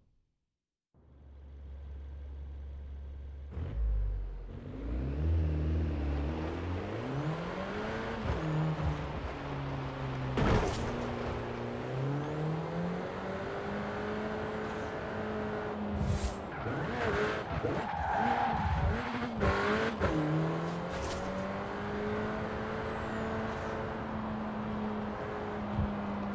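A car engine idles, then revs and rises in pitch as the car speeds up and shifts gears.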